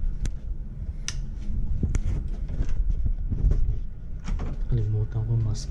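A door handle clicks as a door opens.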